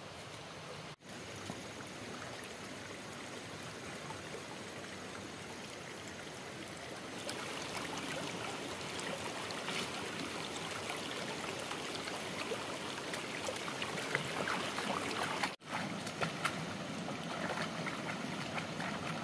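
A stream flows and babbles over rocks nearby.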